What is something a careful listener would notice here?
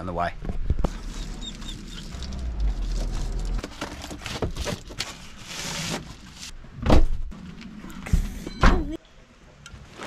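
Objects knock and scrape inside a car boot.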